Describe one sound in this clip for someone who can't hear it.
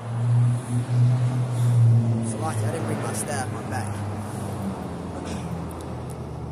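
Traffic rumbles past on a nearby road.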